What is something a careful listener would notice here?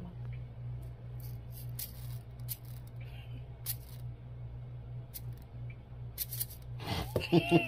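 A fork scrapes and clicks against a bowl.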